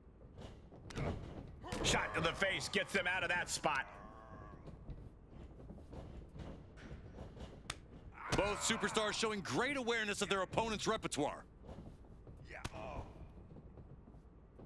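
Heavy thuds ring out as two wrestlers grapple.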